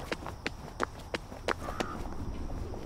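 Footsteps tap steadily on a stone street.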